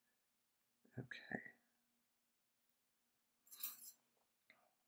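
Small metal pliers click softly.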